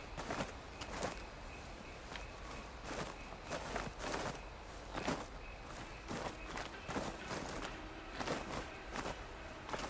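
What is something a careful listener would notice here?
Hands grip and scrape against rock in quick, repeated grabs.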